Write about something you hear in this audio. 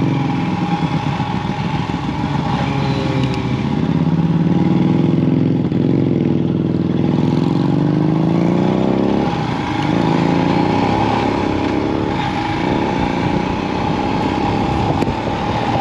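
A motorcycle engine rumbles up close, rising and falling in pitch as it changes gear.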